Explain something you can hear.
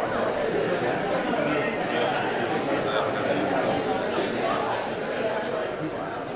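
A band plays music loudly in a large echoing hall.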